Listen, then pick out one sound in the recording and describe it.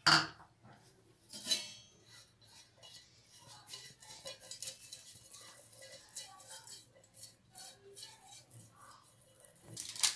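A brush swishes softly across a metal tin.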